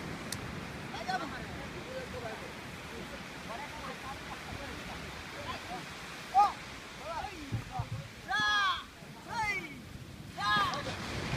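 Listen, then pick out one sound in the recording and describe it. Men shout together in rhythm outdoors.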